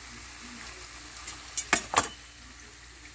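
Metal tongs clack against a plate.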